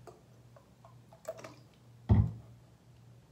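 A plastic bottle cap clicks open.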